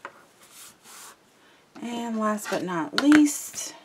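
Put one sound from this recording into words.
Paper slides and rustles across a tabletop.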